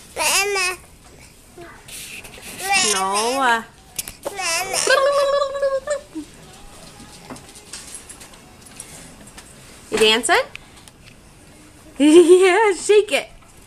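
A toddler babbles and squeals in high, sing-song bursts close by.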